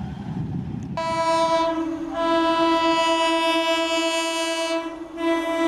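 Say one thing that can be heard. A train horn blares loudly in an echoing space.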